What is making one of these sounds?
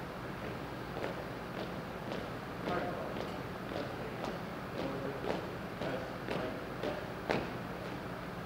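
Hard-soled shoes step in unison on a stage floor.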